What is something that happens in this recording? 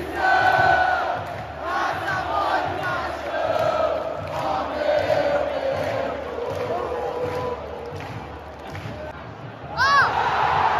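A huge stadium crowd sings loudly together.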